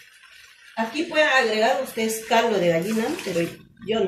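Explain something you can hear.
Water pours into a pot.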